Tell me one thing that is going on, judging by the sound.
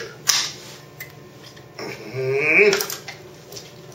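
A metal lever clicks and clunks as it is pressed down and released.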